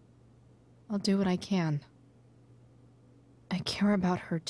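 A young woman speaks in a worried, hesitant voice, close by.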